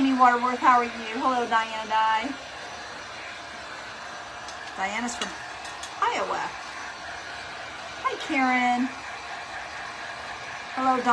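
A heat gun blows with a steady hum.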